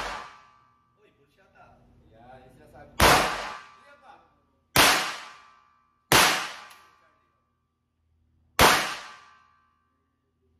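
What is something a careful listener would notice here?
A pistol fires loud, sharp shots that ring out in a small, echoing room.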